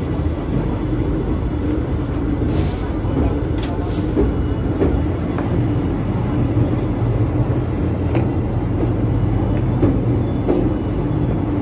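A train clatters across a steel bridge.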